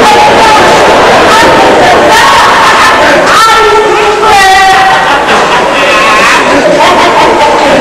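Men sing loudly together in a large echoing hall.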